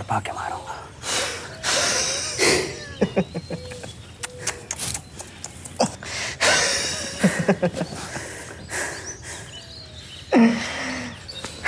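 A young man laughs loudly and close by.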